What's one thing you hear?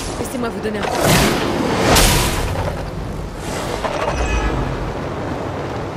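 Flames whoosh and roar in loud bursts.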